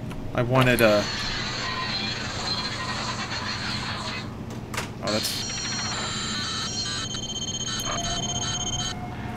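Electronic beeps and hisses sound from a control panel.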